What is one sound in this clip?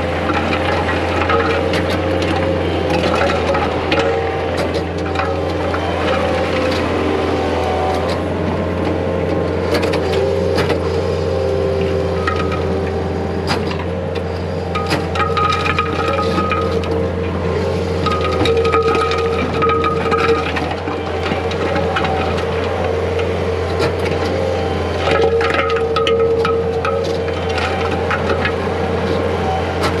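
A diesel engine of a tracked loader rumbles steadily close by.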